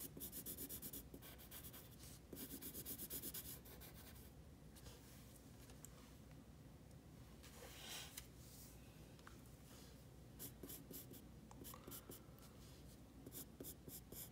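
A pencil scratches quickly across paper in short strokes.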